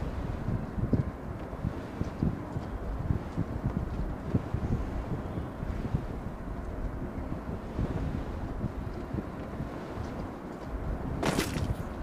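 Wind rushes steadily during a parachute descent.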